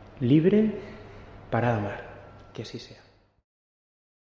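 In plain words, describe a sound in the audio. A young man chants a short phrase in a clear, echoing voice.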